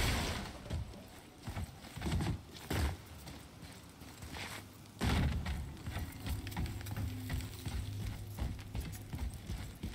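Heavy footsteps thud on wooden boards.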